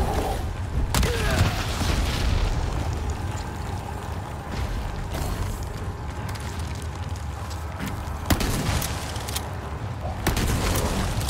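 A shotgun fires with sharp blasts.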